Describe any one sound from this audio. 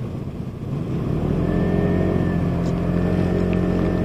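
A scooter engine revs up as the ride pulls away.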